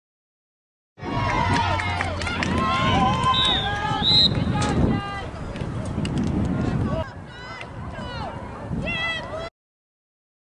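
Young women cheer and shout outdoors after a goal.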